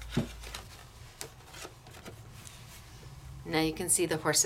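A stiff paper card rustles and scrapes as hands handle it.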